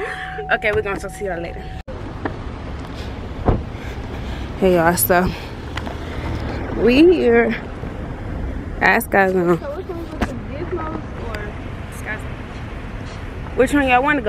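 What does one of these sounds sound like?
A young woman talks animatedly, close by.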